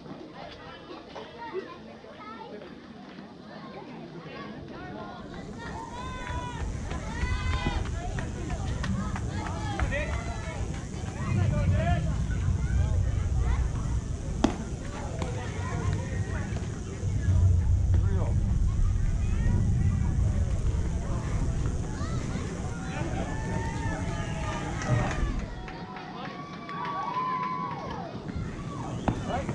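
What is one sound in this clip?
Children and adults shout and cheer outdoors.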